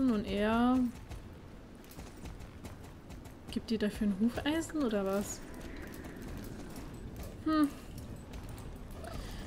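A horse's hooves thud on the ground at a trot.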